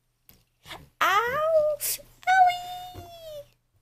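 A baby squeals and babbles up close.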